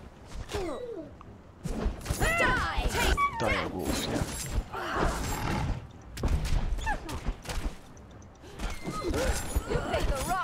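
A large wolf snarls and growls.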